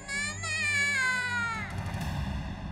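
A young girl cries out loudly, wailing.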